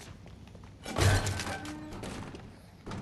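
Wooden crates smash and clatter apart.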